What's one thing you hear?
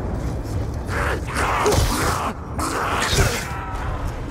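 A knife slashes with a sharp swish and thud.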